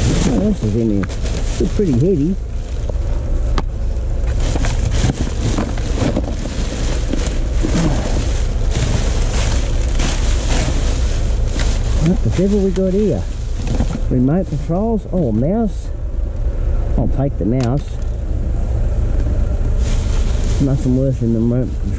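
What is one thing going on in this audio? Plastic bags and cardboard rustle and crinkle as someone rummages through them.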